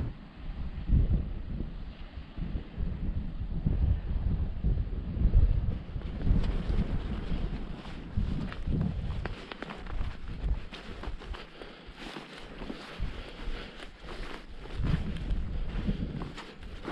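Wind gusts and rumbles loudly outdoors.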